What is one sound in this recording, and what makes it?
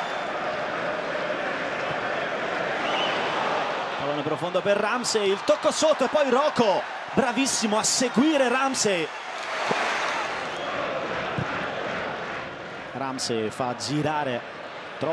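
A large stadium crowd roars and murmurs outdoors.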